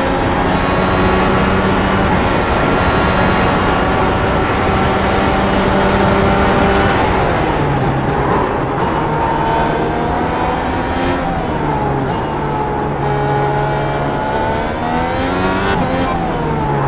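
A racing car engine screams at high revs, then drops in pitch under braking and rises again as it accelerates.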